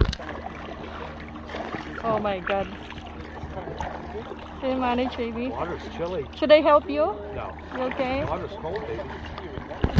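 Paddles splash in calm water.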